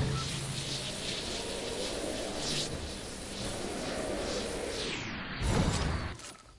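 Wind rushes loudly past a gliding game character.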